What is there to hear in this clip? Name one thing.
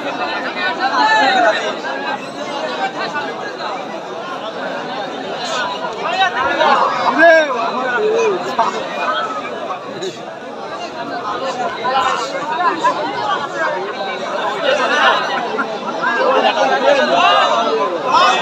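A large outdoor crowd chatters and shouts excitedly.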